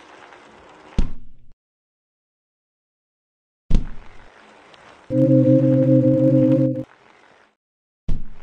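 A bicycle crashes with a heavy thud.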